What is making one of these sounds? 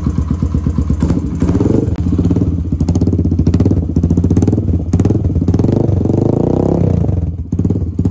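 A motorcycle engine revs up and down sharply several times.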